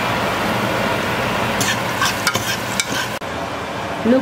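Onions sizzle in a frying pan.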